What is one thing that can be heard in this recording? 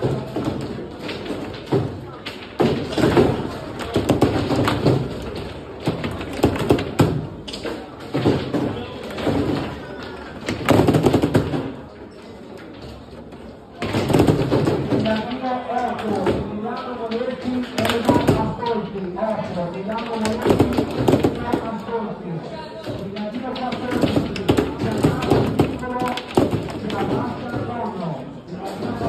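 Plastic players clack and rods rattle on a foosball table.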